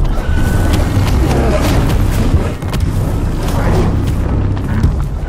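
A huge creature rumbles and crashes heavily.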